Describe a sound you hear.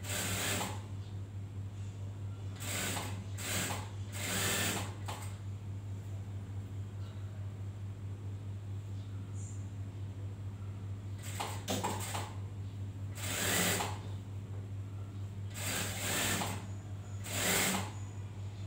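A sewing machine whirs in short bursts.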